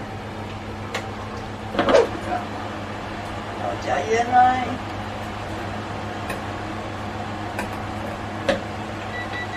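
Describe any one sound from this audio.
A metal spoon clinks against a steel pot while stirring.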